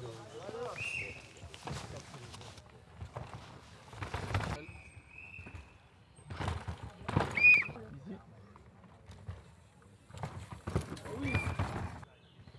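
Bike brakes squeal sharply.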